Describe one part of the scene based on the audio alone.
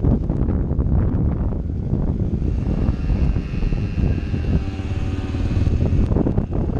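Wind rushes and buffets loudly past the rider.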